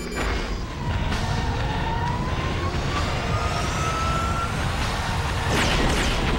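An aircraft engine whines and rises in pitch as a craft flies overhead.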